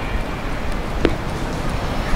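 A heavy ball thumps into a man's hands.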